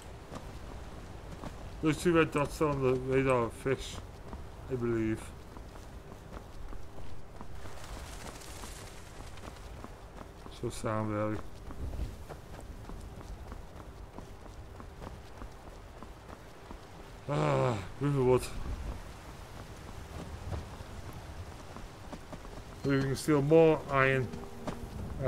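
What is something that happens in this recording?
Footsteps tread steadily on a stone path.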